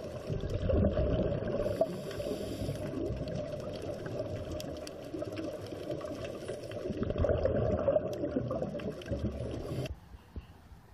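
Air bubbles rumble and gurgle loudly underwater.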